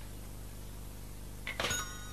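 A telephone handset clatters down onto its cradle.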